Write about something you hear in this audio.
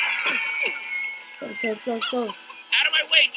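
A group of young people cry out in alarm.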